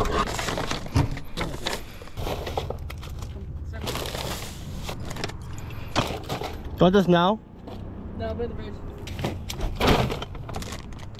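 A cooler lid thumps open and shut.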